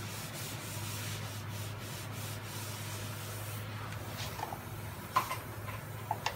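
A hand rubs across a car's metal body panel.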